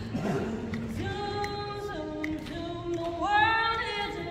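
Women sing together in close harmony in a large hall.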